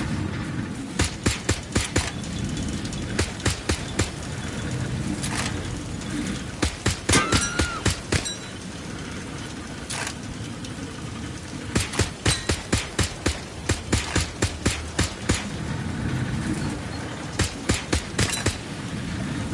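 A toy gun fires in quick bursts of sharp pops.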